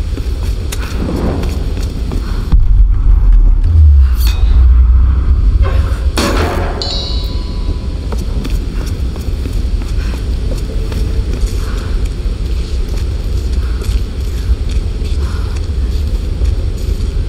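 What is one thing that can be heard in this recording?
A torch flame crackles and hisses.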